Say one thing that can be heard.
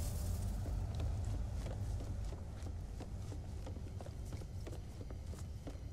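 Footsteps clank on a metal floor.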